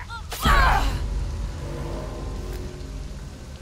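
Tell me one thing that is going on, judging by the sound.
A young woman pants heavily, close by.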